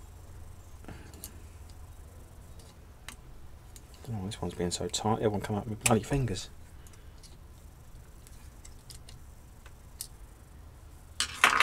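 Fingers click and scrape against a small metal part.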